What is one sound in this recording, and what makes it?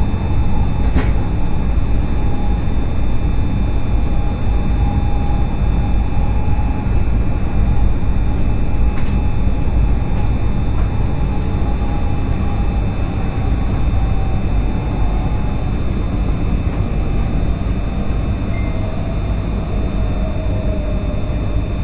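A freight train roars past close by.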